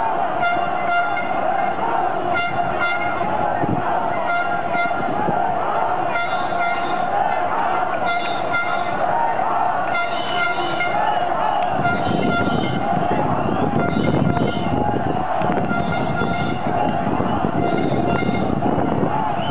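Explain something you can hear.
A large crowd chants and shouts in the distance.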